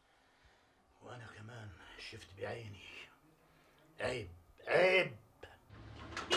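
An elderly man speaks quietly close by.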